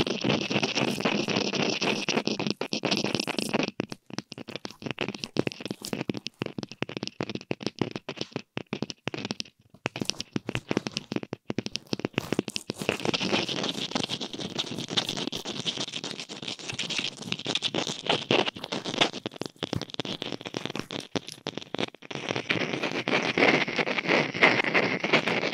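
Dry decorations rustle and crinkle in hands.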